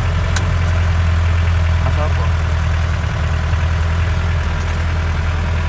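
A vehicle rattles and creaks over a rough road.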